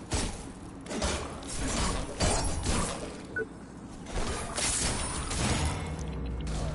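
Heavy metal blows clang and crash in quick succession.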